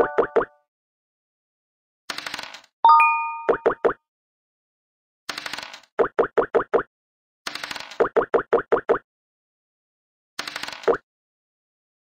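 Game pieces tap in quick short steps as they hop along.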